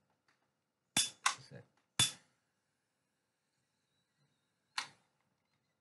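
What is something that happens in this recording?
A lighter clicks and flicks several times close by.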